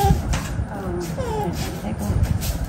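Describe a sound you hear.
A small monkey squeaks softly.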